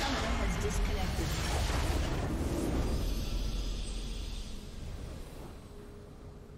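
A loud magical blast booms and rumbles, then slowly fades away.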